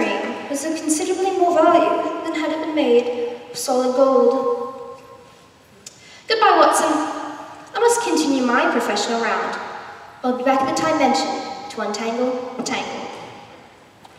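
A woman answers theatrically, heard from a distance in a large hall.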